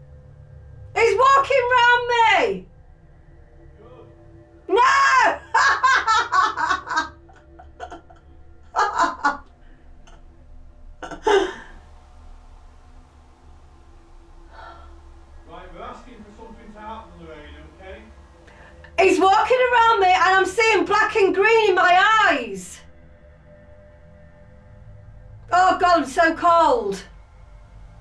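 A woman speaks slowly and calmly, pausing between phrases.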